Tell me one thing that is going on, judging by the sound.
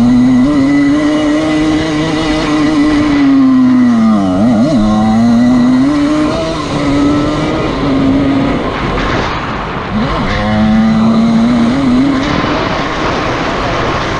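Wind rushes past steadily.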